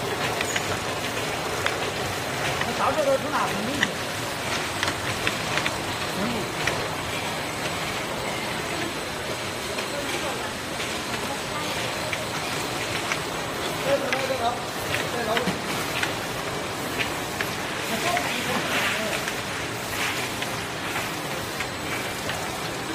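A labelling machine hums and clatters steadily.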